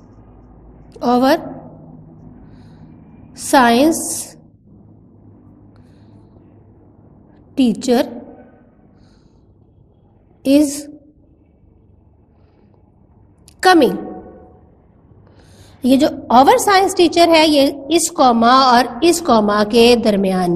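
A woman speaks clearly in short bursts with long pauses, then talks steadily.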